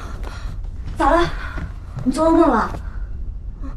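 A young woman asks a question calmly.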